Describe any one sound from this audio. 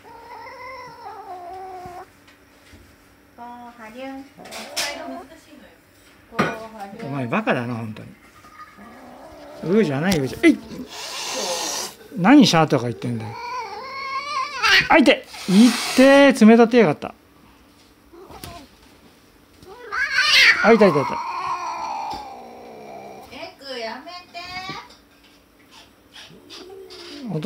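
A cat meows loudly up close, again and again.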